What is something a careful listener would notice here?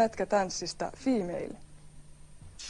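A woman speaks calmly into a microphone, up close.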